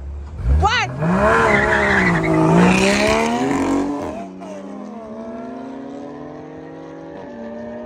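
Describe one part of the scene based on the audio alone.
Two cars accelerate hard and roar away, fading into the distance.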